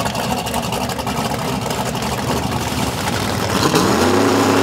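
A V8 drag car idles with a lumpy rumble.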